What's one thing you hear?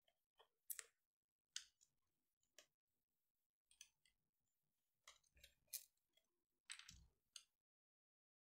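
Small scissors snip in short, sharp clicks.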